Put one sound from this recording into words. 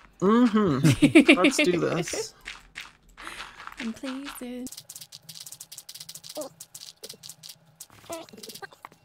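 Dirt crunches in quick bursts as blocks are dug out.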